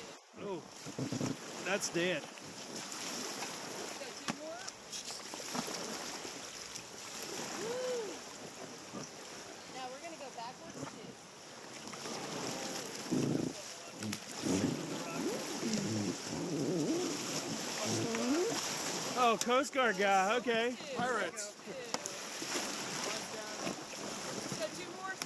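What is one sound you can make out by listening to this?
River water rushes and splashes over rocks nearby.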